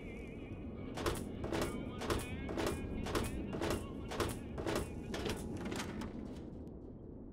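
Footsteps tread on a hard metal floor.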